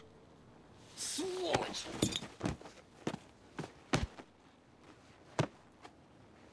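Blows land with dull thuds.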